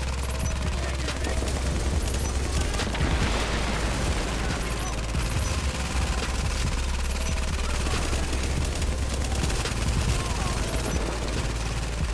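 Rifles fire in short bursts.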